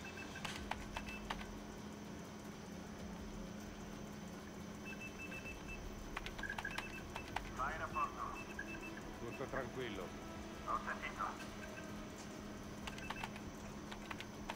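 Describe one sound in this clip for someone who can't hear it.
Short electronic menu clicks tick now and then.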